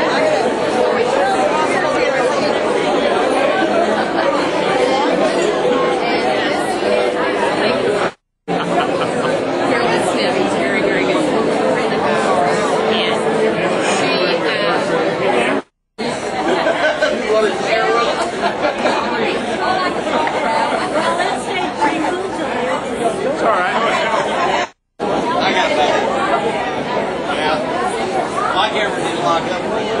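A crowd chatters and laughs loudly in a busy room.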